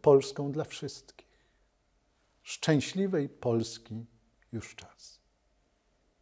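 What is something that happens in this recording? A middle-aged man speaks calmly and firmly into a microphone.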